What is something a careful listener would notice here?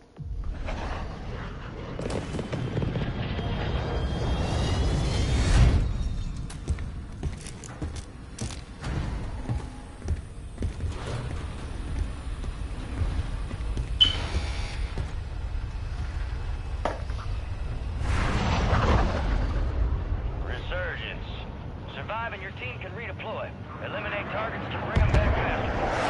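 A large plane's jet engines roar loudly.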